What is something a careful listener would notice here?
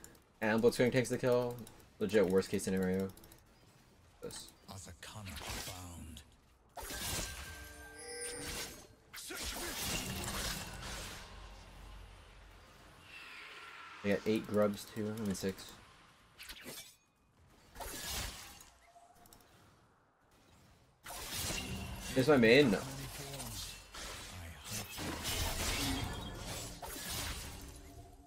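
Video game fight sounds clash and zap.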